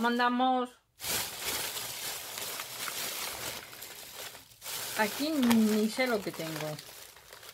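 A plastic bag rustles and crinkles as hands rummage through it.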